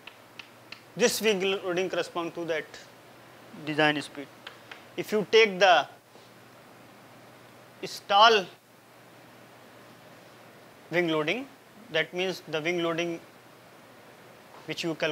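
A young man speaks calmly, as if lecturing.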